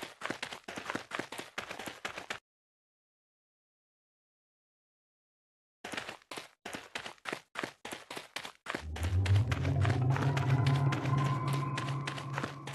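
Footsteps thud quickly and steadily on hard ground.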